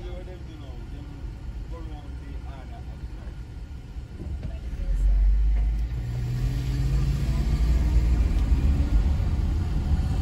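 A car engine idles quietly, then revs up as the car pulls away.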